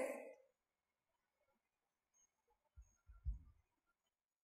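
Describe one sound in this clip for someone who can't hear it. A woman sips from a cup.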